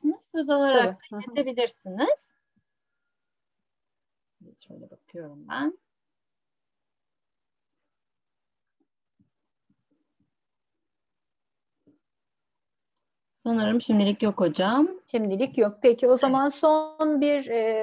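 A woman speaks calmly over an online call, in bursts with pauses.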